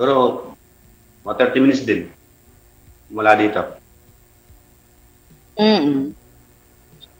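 A man speaks in short, emotional phrases over an online call.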